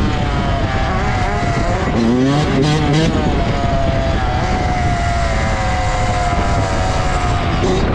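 A motorcycle engine roars up close, revving up and down.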